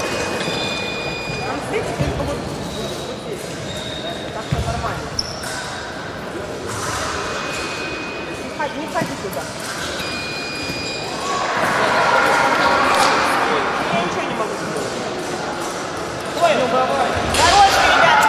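People murmur and talk in the distance in an echoing hall.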